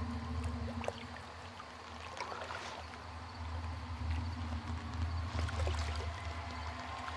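Strong wind roars over rough sea.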